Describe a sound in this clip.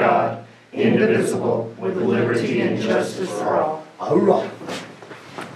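A group of men and women speak together in unison in a room.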